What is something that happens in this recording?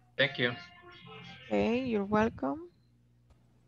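A young woman speaks briefly through an online call.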